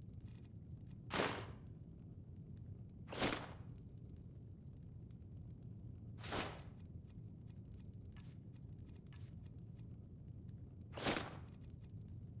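A soft whoosh sounds several times.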